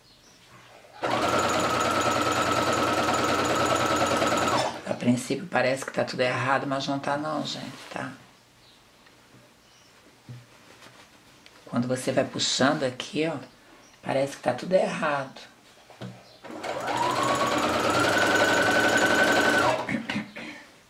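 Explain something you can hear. A sewing machine runs fast and steadily, stitching in bursts.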